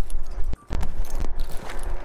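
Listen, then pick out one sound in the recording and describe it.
A metal trap clanks as it is set down.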